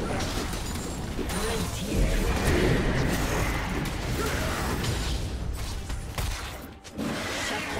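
Swords and blows clash and strike in quick succession.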